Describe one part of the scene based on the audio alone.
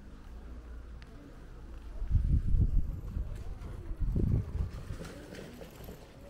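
A bicycle rolls past on gravel.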